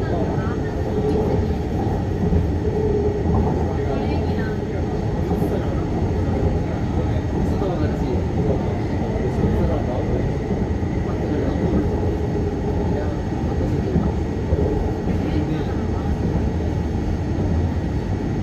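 A train rumbles steadily along a track.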